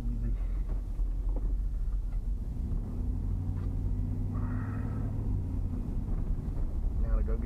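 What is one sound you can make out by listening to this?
A car's engine hums and its tyres roll on a road, heard from inside.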